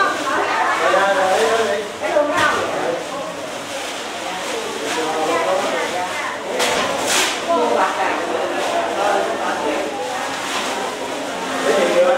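A crowd of men and women chatter all around in a room with hard walls.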